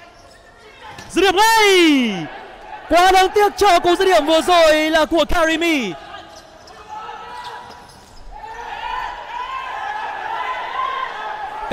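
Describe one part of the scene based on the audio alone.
A crowd cheers and calls out in a large echoing hall.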